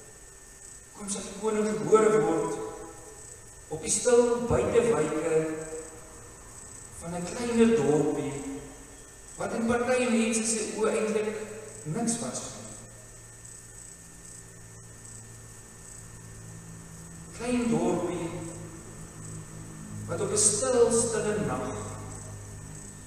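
A man speaks calmly through a microphone in an echoing hall, pausing between phrases.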